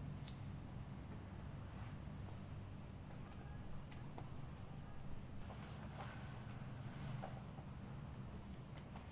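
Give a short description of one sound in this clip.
Hands rub and press on a cotton sheet with a soft rustle.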